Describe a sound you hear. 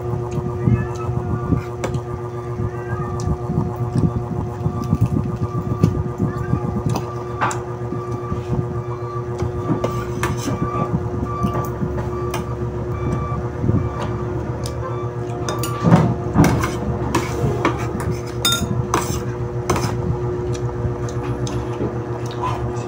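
A woman chews food with her mouth full, smacking her lips.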